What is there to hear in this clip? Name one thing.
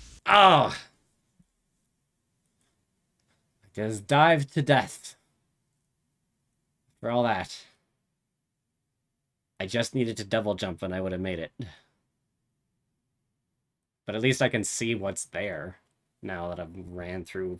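A young man speaks with animation into a microphone, in short bursts with pauses.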